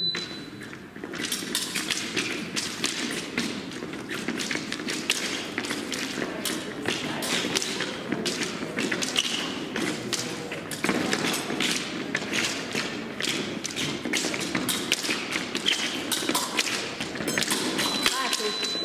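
Fencers' shoes tap and scuff on a fencing strip.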